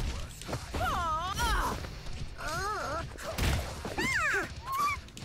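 Cartoon punches and kicks land with sharp smacks.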